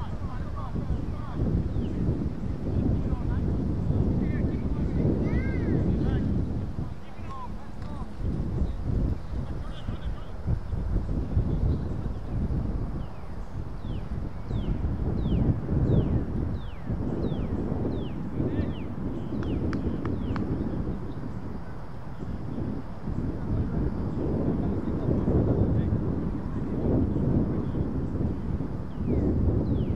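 Wind blows across an open field outdoors.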